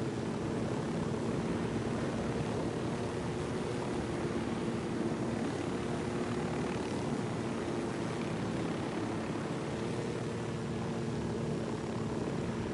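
A helicopter's rotor thumps in flight.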